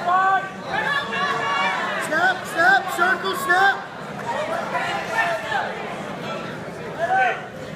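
Men in a crowd shout encouragement loudly in a large echoing hall.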